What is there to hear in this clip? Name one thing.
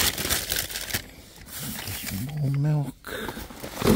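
Cardboard scrapes and rustles as it is moved.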